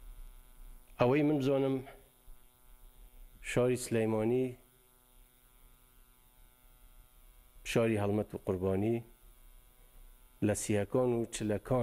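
A middle-aged man speaks slowly and formally into a microphone, with long pauses.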